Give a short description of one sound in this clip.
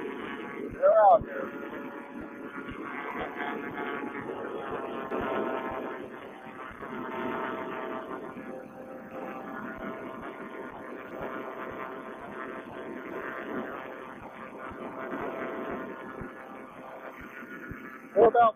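A small aircraft engine drones steadily close by.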